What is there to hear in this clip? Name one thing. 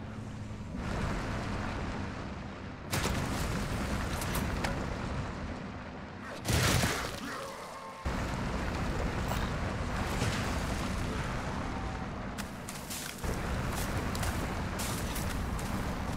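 Wind rushes past loudly during fast movement.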